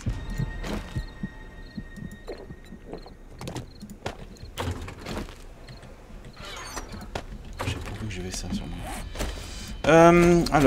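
Short soft clicks sound as items are moved in a game menu.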